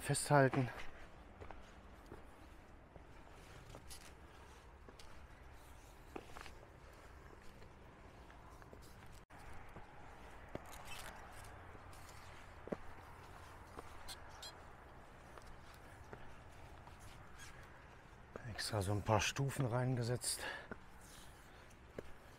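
Footsteps crunch and scrape on a rocky trail outdoors.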